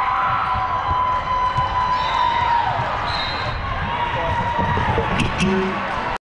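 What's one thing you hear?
A crowd of players and onlookers chatters in a large echoing hall.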